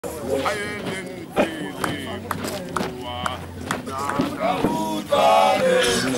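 A man calls out with animation.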